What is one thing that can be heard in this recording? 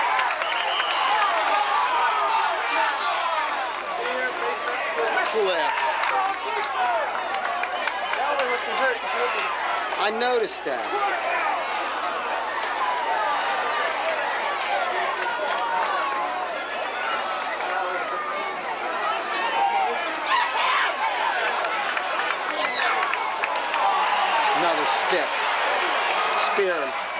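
A crowd of spectators cheers and shouts steadily outdoors.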